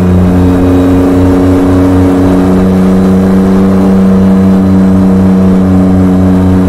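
A truck's diesel engine rumbles steadily with a low, even drone.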